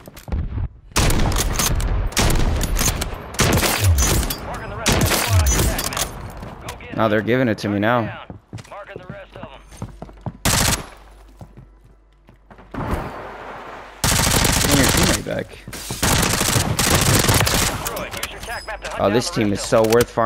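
Rifle shots crack repeatedly, some in rapid bursts.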